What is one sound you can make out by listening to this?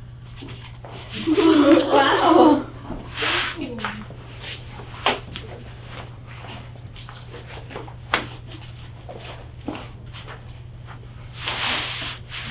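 A large sheet of paper crinkles and rustles as it is unrolled.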